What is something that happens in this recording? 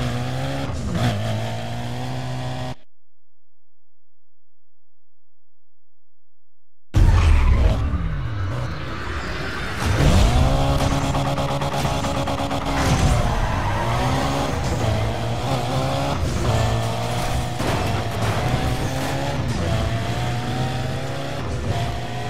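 A car engine roars and revs up and down through the gears.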